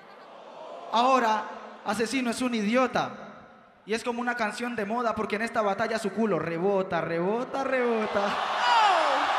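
A young man speaks with animation through a microphone over loudspeakers in a large echoing hall.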